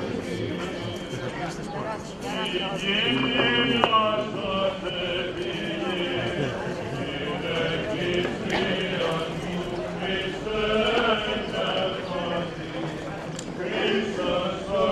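A large crowd of men and women talks and murmurs all around, close by.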